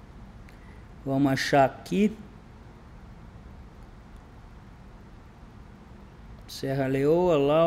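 A man speaks into a microphone in short bursts, with pauses between.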